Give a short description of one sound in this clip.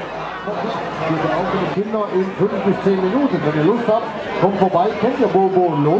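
A crowd sings together loudly.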